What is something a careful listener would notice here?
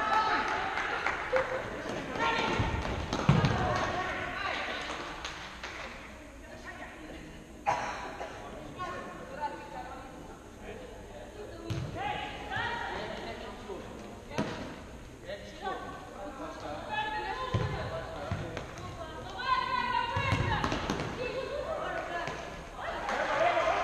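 Young men shout to each other across the hall.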